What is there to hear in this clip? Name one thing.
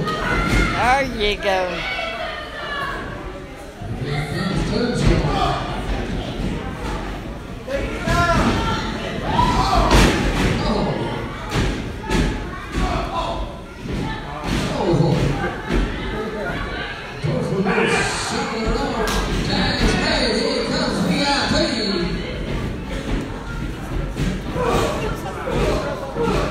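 Men in the audience shout and cheer in a large echoing hall.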